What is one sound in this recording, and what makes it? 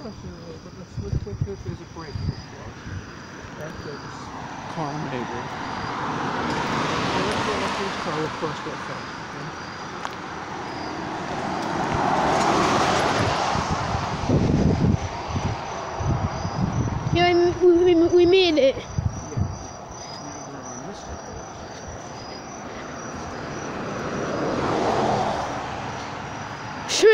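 Footsteps thud on pavement and grass.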